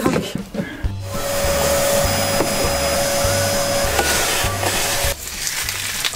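A vacuum cleaner whirs steadily.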